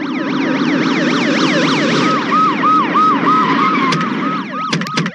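Sirens wail rapidly up and down.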